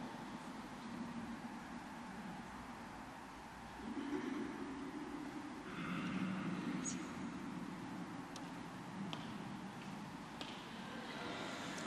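A congregation murmurs together in a large echoing hall.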